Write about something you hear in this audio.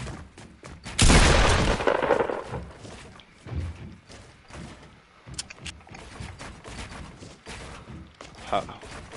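Wooden building pieces clatter and thud into place in quick succession.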